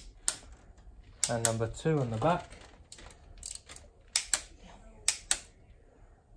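A ratchet wrench clicks and clanks against metal parts.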